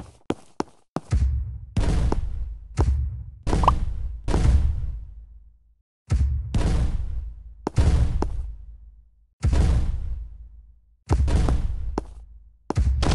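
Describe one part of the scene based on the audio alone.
A cannon in a game fires balls with booming thuds.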